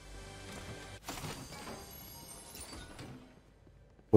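A treasure chest hums with a shimmering, chiming tone.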